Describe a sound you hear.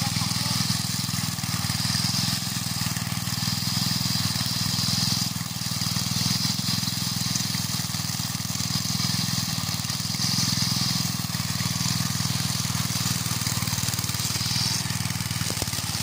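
A small petrol engine runs loudly with a steady chugging drone.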